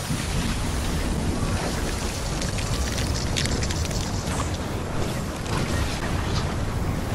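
Quick footsteps patter across the ground in a video game.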